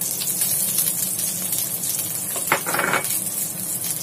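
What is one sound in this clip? Slices of food drop into a metal pan.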